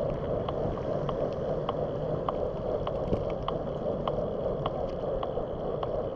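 Wind roars steadily across the microphone outdoors.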